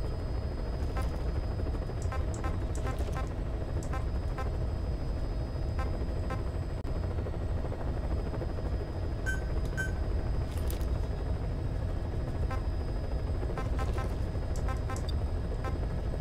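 Short electronic menu blips sound as a selection moves.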